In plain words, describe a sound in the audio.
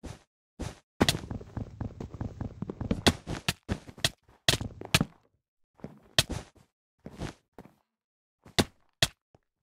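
A sword strikes a player with sharp thuds in quick succession.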